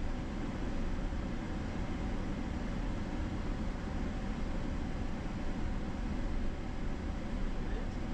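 Tyres crunch and rumble over a dirt road.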